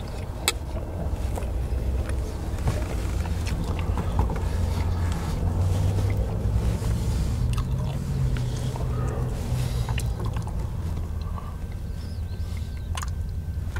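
A middle-aged man talks calmly nearby.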